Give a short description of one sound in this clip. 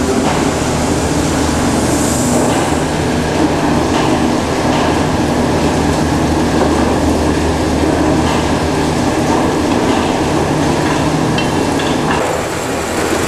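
A mixer churns dough with a steady mechanical hum.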